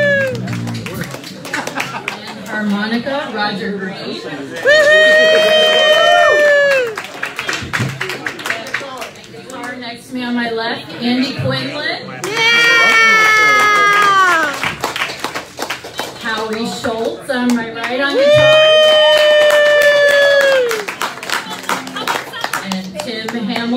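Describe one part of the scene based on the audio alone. A live band plays a rock song on electric guitars, bass and drums.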